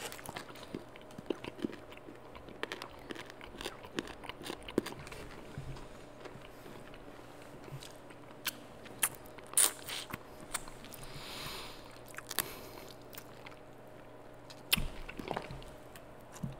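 Fries crinkle and tap against a foam container close to a microphone.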